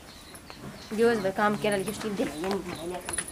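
A second woman answers in a raised voice.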